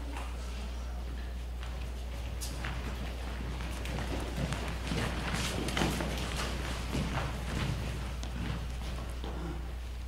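Footsteps patter across a wooden stage.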